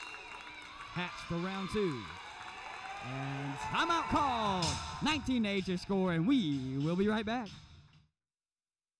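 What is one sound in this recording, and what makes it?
Young women shout and cheer loudly.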